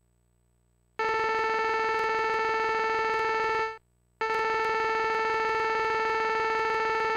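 A steady electronic tone beeps as dialogue text prints out.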